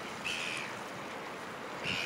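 A man splashes through water.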